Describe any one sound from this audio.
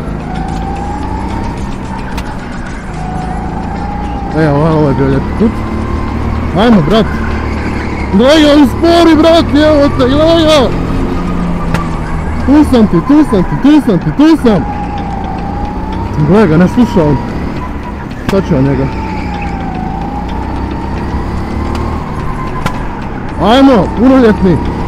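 A go-kart motor whines steadily, rising and falling in pitch as the kart speeds up and slows down.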